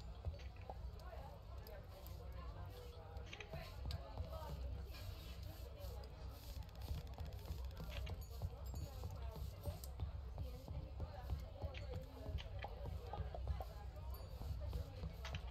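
A fire crackles softly in a hearth.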